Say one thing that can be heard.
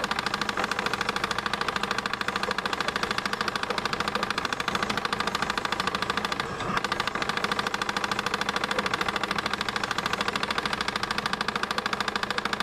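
Rapid electronic gunfire rattles without pause in an arcade game.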